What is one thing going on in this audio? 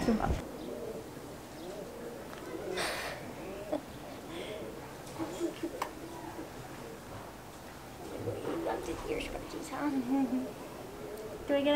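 A young woman talks softly and cheerfully close by.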